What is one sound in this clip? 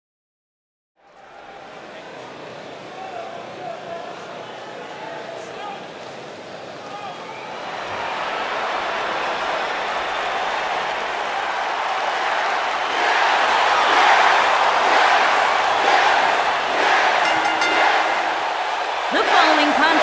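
A large arena crowd cheers and roars, echoing through the hall.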